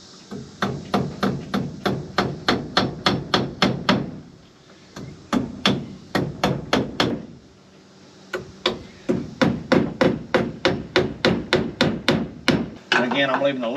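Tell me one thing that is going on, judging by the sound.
A hammer taps rapidly on wood in quick bursts.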